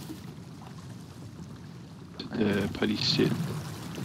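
Oars splash in the water.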